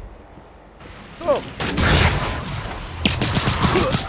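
A heavy wrench swings and thuds against something.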